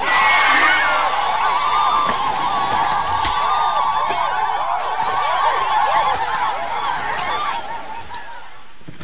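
A crowd of men shouts and cheers outdoors.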